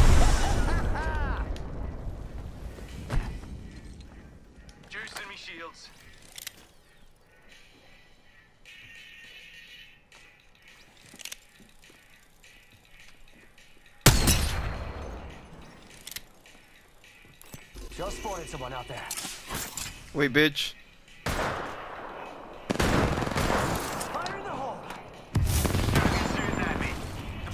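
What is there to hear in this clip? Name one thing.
Gunshots ring out with loud bangs.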